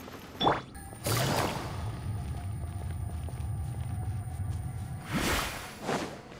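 A magical blast whooshes and hums loudly, then fades.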